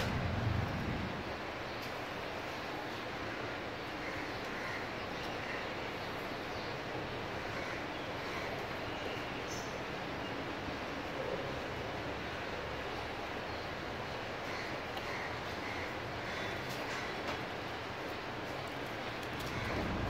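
Small goat hooves tap softly on a hard floor.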